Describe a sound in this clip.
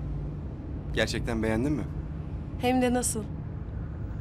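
A young woman speaks briefly and softly.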